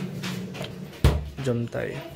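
A refrigerator door thuds shut.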